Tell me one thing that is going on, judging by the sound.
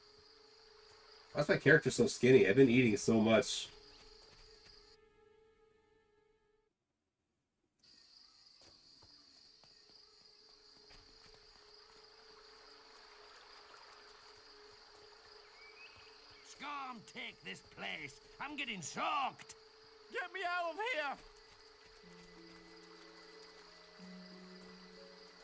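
Footsteps patter on a dirt path.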